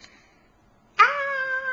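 A young child cries out loudly close by.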